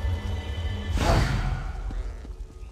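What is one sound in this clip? A magical burst whooshes loudly and fades.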